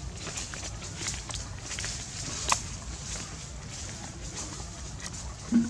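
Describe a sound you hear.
Dry leaves rustle and crackle softly as a small monkey moves about.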